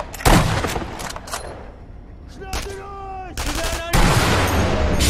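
A rifle shot booms and echoes.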